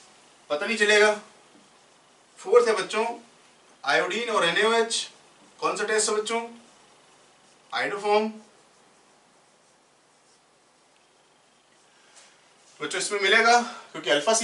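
A man explains in a calm, steady voice, speaking in short phrases with pauses.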